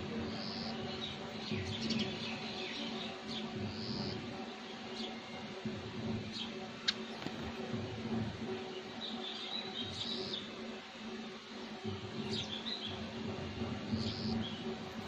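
Small birds chirp in short bursts.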